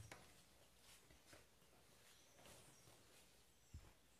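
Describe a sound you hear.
Fabric rustles as it is handled and folded.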